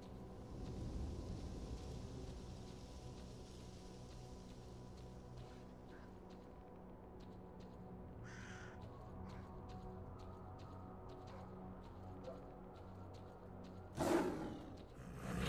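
Footsteps scrape and crunch on rocky ground.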